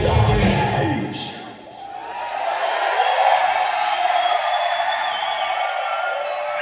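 A heavy metal band plays loudly and distorted, heard from within a live crowd.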